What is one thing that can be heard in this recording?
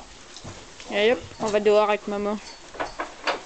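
A woman speaks quietly to a horse nearby.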